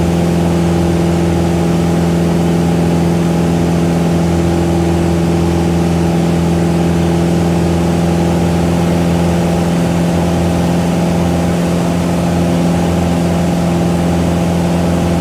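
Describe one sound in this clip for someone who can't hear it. A small propeller engine drones loudly and steadily inside the cockpit.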